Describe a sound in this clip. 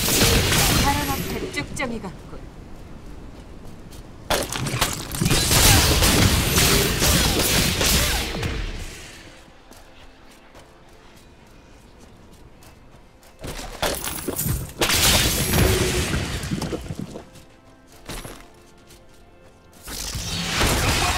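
Magic spells whoosh and crackle in loud bursts.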